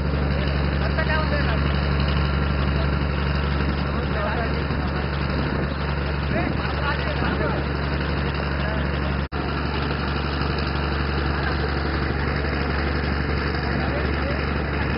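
A boat's motor drones steadily.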